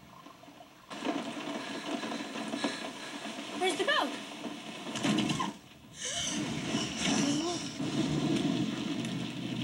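Rain patters steadily on a car roof.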